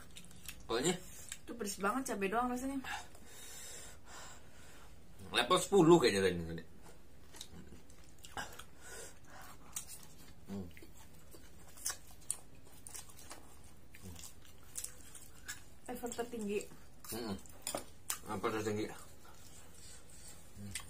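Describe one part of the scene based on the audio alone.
Chewing and smacking sounds come close to a microphone.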